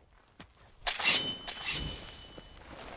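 A blade clashes and strikes in a short fight.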